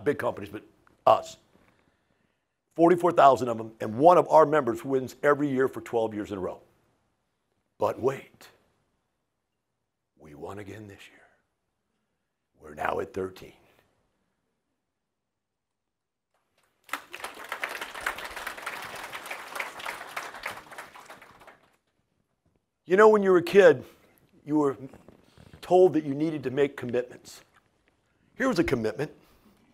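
An older man speaks with animation through a clip-on microphone, in short bursts with pauses.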